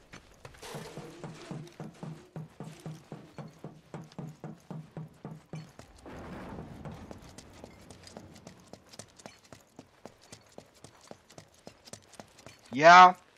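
Footsteps run quickly over a hard floor.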